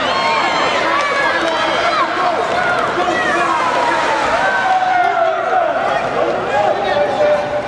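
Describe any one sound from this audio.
A crowd of spectators shouts and cheers in a large echoing arena.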